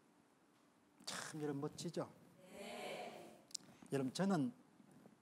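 A middle-aged man speaks with animation into a clip-on microphone.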